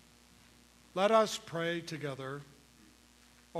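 An elderly man sings a short chant loudly through a microphone.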